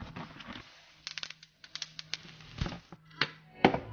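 Bubble wrap crinkles and crackles.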